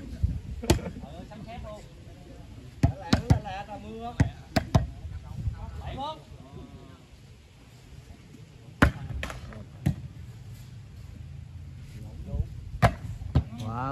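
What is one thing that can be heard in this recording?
A ball is kicked with sharp, hard thuds.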